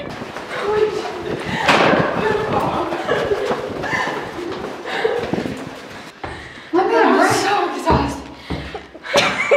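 Footsteps hurry along a hard floor.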